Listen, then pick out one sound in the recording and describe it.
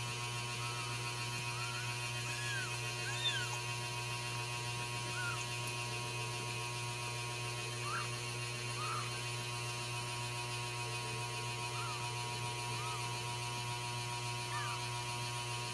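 A newborn kitten mews in thin, high squeaks now and then.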